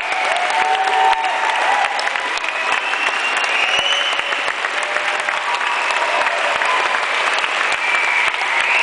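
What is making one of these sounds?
An audience cheers and whoops.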